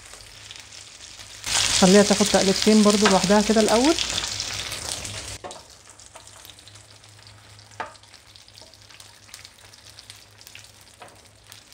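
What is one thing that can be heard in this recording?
A wooden spatula scrapes and taps a metal pan.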